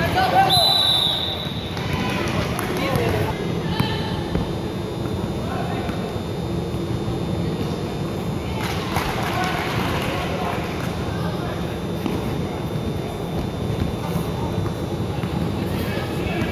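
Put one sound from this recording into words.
A crowd of spectators murmurs and calls out in a large echoing hall.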